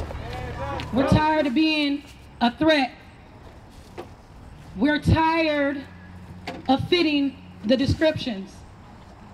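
A woman speaks forcefully through a loudspeaker.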